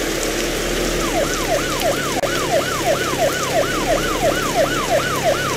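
A siren wails, rising and falling quickly and repeatedly.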